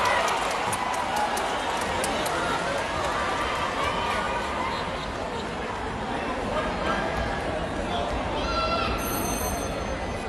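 Players shout to each other during a rally.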